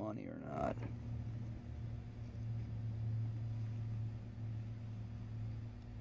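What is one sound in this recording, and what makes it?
Pliers click and scrape against metal.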